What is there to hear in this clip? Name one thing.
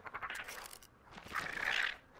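A large creature chitters and rasps nearby.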